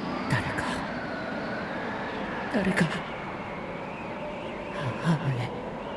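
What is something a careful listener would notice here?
A young boy speaks softly and sadly.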